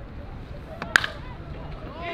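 A baseball bat hits a ball with a sharp crack.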